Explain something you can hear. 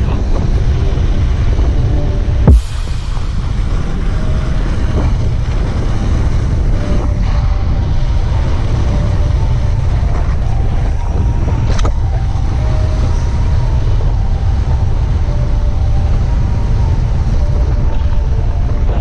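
Mountain bike tyres hiss and rumble over packed snow.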